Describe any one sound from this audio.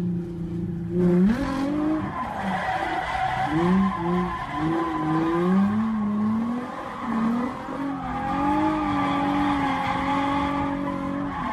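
Tyres screech loudly on tarmac.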